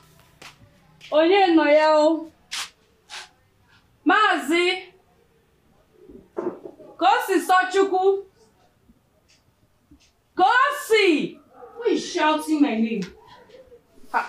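A woman speaks loudly and with animation nearby.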